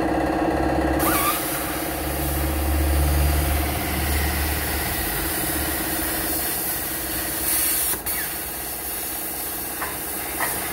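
An angle grinder whines as it grinds metal.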